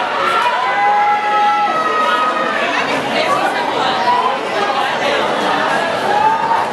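A crowd cheers and shouts in a large echoing hall.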